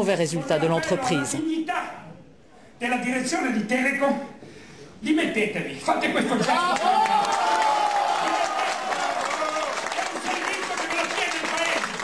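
An older man speaks forcefully into a microphone in a large echoing hall.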